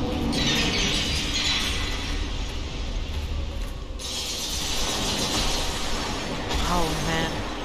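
A dragon's icy breath blasts with a loud hissing rush.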